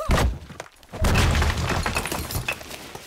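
A stone wall crumbles and collapses with a rumbling crash.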